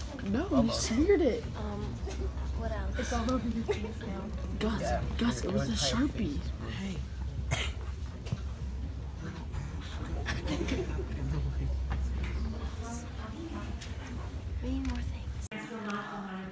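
A young man laughs and talks close by.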